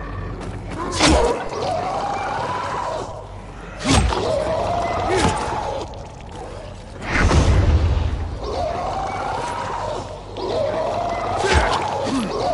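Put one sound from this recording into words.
A creature snarls and growls close by.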